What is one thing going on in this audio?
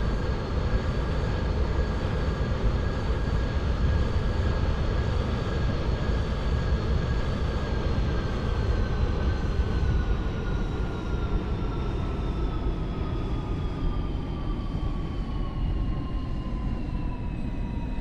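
A train engine hums steadily, then drops in pitch as the train slows.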